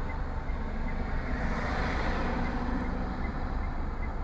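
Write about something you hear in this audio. A van drives past with a rising and fading whoosh.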